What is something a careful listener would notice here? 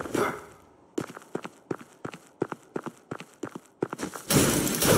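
Footsteps run quickly across snow.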